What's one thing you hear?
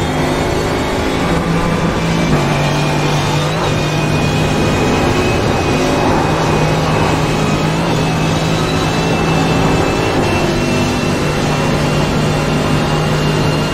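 Tyres rumble over the track.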